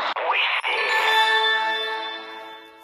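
A bright chime rings out.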